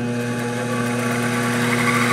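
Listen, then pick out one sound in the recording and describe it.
An engraving bit scratches across a plastic sheet.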